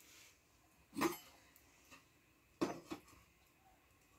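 A teapot clinks as it is set on top of a metal urn.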